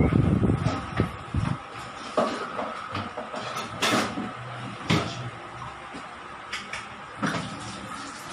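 Dishes and utensils clatter and knock.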